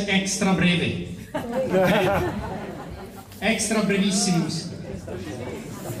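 A brass band plays loud, ringing notes in a large hall.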